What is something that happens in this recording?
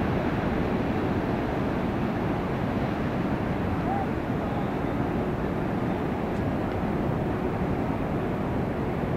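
Ocean waves break and roll steadily onto the shore.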